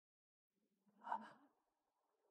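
A man gasps softly.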